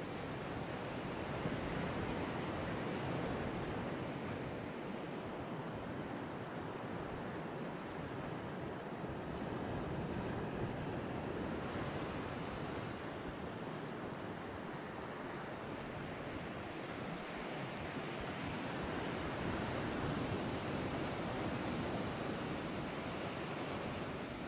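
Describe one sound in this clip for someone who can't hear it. Waves wash onto the shore in the distance.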